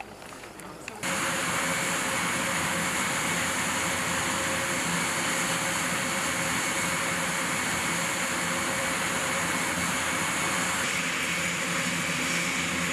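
A propeller aircraft's engines roar loudly and steadily.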